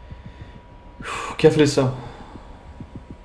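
A man speaks briefly and loudly, close to a microphone.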